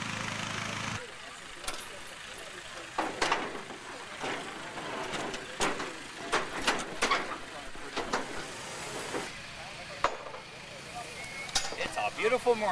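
Men and women talk casually nearby outdoors.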